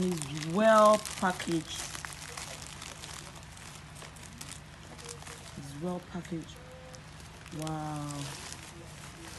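A woman speaks briefly nearby.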